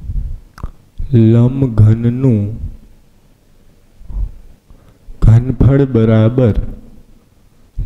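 A man speaks calmly and clearly into a microphone, in short phrases.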